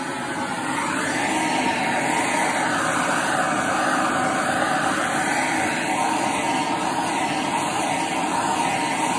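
A blowtorch roars steadily.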